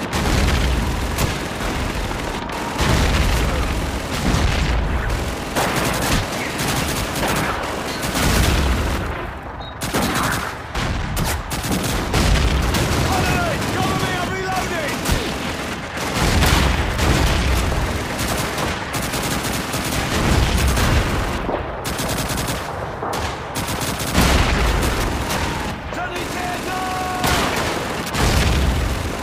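Heavy explosions boom and rumble repeatedly in the distance.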